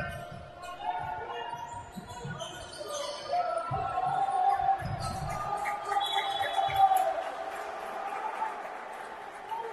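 A basketball bounces on a wooden court in an echoing hall.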